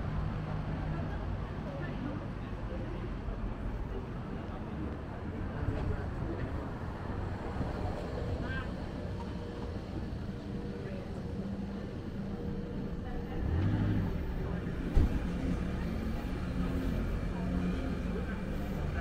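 Town street traffic hums steadily outdoors.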